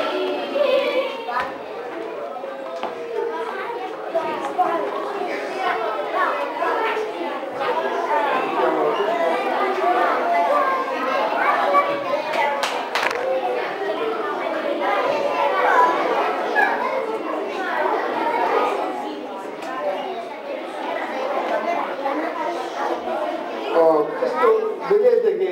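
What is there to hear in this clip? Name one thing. A middle-aged man speaks steadily through a microphone in an echoing hall.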